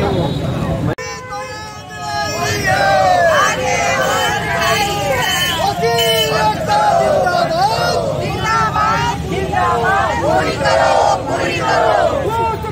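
A crowd of men and women chant slogans loudly.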